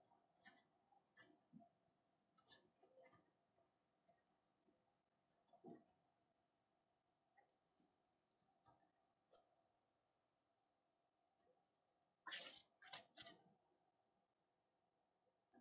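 Stiff cards shuffle and flick against each other in a hand.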